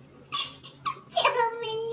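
A baby whimpers briefly.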